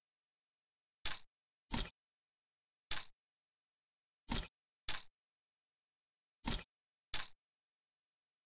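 Short game sound effects chime in quick bursts.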